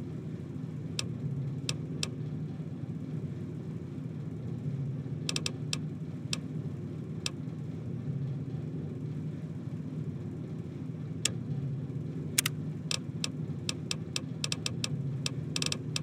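Short interface clicks tick as menu items are selected.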